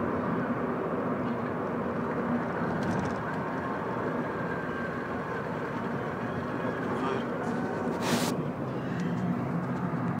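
A small hatchback's engine hums as it drives along, heard from inside the car.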